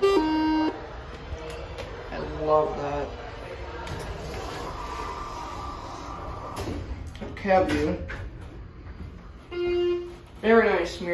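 An elevator chime beeps.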